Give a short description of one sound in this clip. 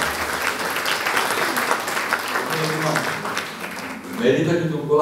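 An audience claps and applauds in a hall.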